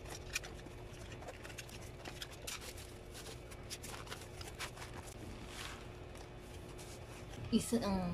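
Cardboard flaps scrape and rustle as a box is opened.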